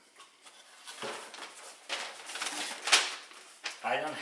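Paper rustles and crackles as it is unfolded.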